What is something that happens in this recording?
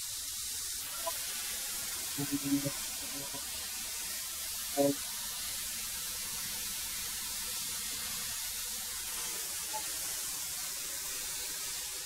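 A thickness planer hums loudly and steadily as it runs.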